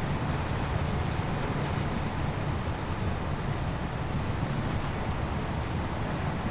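A heavy truck engine rumbles steadily while churning through mud.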